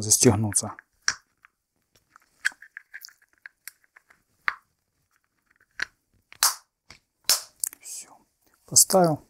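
Small plastic parts click and rattle in hands.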